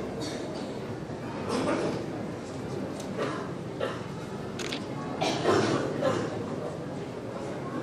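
Several men call to each other quietly.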